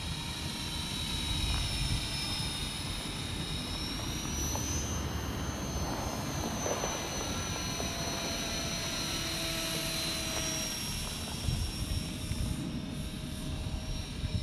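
A small drone whines steadily overhead.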